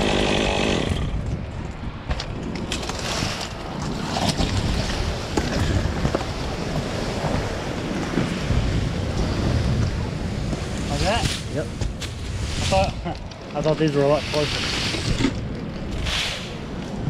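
Leafy branches scrape and rustle across a metal roof.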